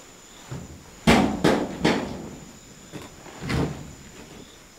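A bed frame knocks and thuds as it is shifted.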